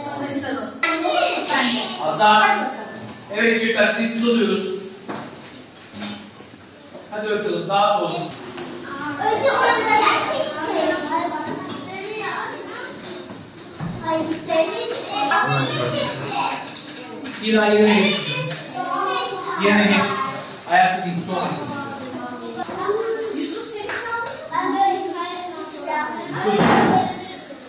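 Young children talk and chatter nearby.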